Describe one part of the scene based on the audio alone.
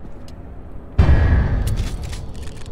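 A heavy thud lands on stone.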